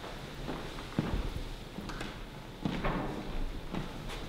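Footsteps knock on a wooden floor in an echoing room.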